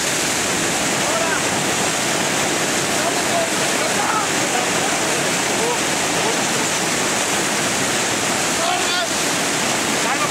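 Young men and women shout and cheer over the rapids.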